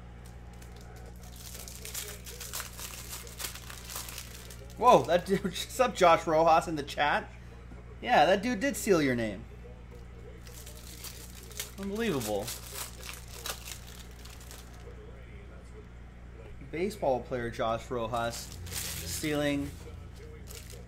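Plastic wrap crinkles as hands tear open a pack.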